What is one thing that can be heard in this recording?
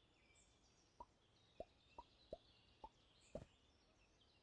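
Wooden game pieces knock softly onto a board.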